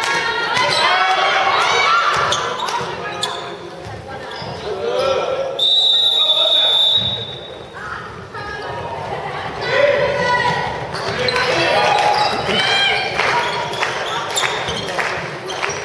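Young women shout and call out across an echoing hall.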